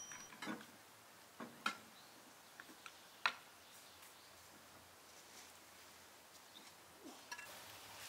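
Glass dishes clink and knock on a wooden counter.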